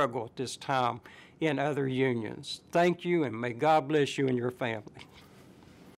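An elderly man speaks calmly and earnestly, close to a microphone.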